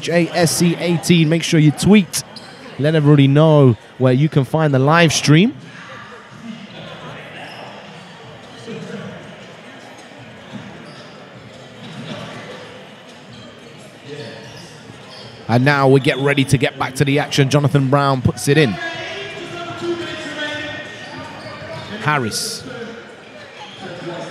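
A large crowd murmurs in an echoing indoor hall.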